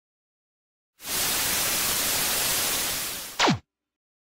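Television static hisses loudly and steadily.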